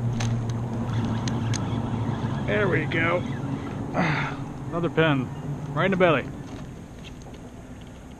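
A fishing reel whirs as a line is reeled in.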